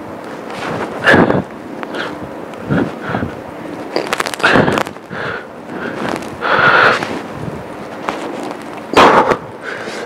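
A man exhales heavily in short bursts.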